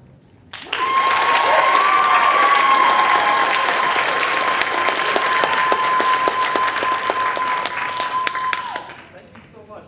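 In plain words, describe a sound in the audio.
Brass horns and a saxophone play a long held chord that echoes through a large hall.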